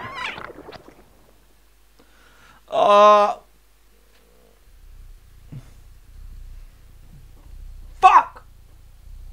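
A man speaks in short bursts close to a microphone.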